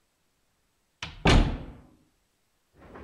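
A door slams shut with a heavy bang.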